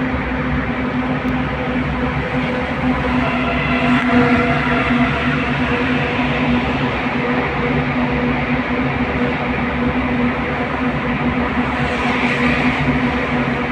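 Tyres roll and rumble on the road surface.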